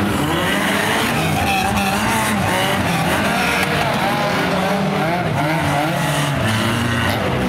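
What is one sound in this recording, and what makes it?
Car engines roar and rev loudly nearby.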